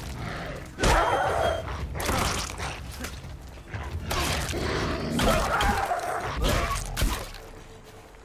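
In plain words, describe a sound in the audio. A wolf snarls.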